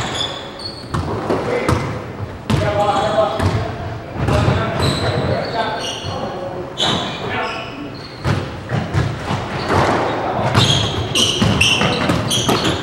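A squash ball smacks against the walls and rackets, echoing in a hard-walled court.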